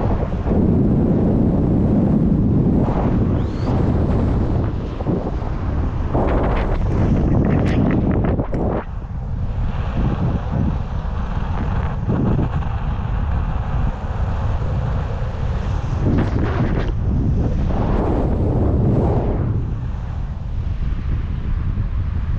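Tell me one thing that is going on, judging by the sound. Strong wind rushes and buffets loudly past the microphone.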